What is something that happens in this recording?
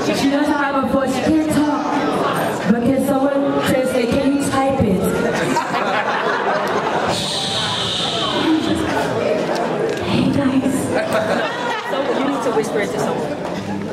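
A woman speaks with animation into a microphone, amplified through loudspeakers.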